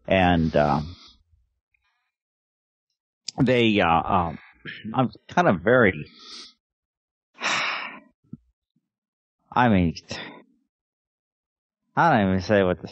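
A middle-aged man talks calmly through a headset microphone over an online call.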